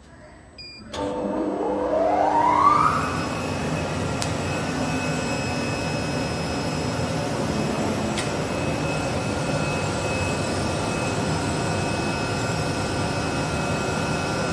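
A cutting machine whirs up to speed and then hums steadily as it moves.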